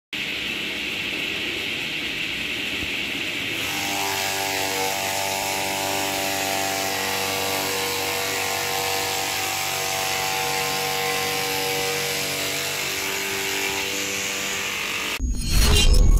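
A machine chops sugarcane stalks with a rough grinding rush.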